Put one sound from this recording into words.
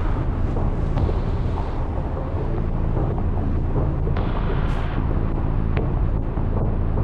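Footsteps crunch softly across the ground.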